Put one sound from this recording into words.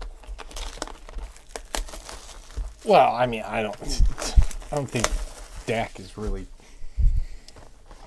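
Cardboard boxes slide and knock together as they are handled.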